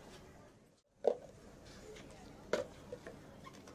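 Plastic cups knock against a counter.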